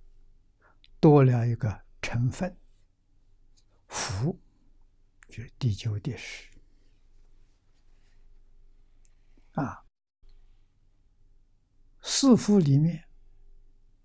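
An elderly man speaks calmly and slowly with pauses, close to a microphone.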